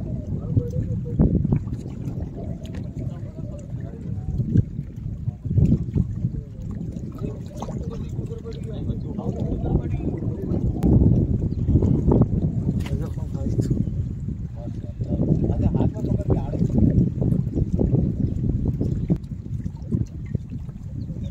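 Small waves lap against rocks.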